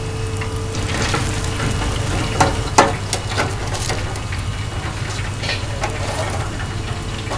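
A metal fryer basket clatters against the fryer.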